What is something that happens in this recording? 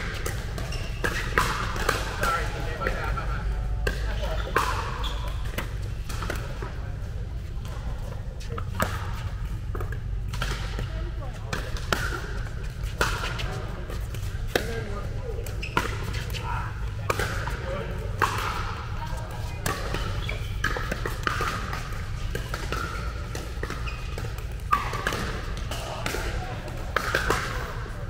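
Players call out with voices echoing in a large indoor hall.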